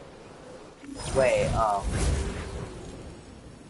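A glider whooshes open in a game.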